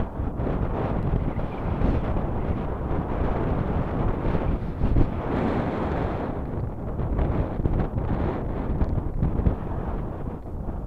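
Waves break and wash up onto the shore.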